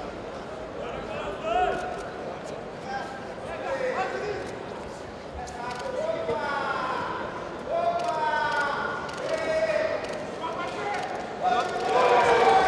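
Men in a crowd shout and call out in a large echoing hall.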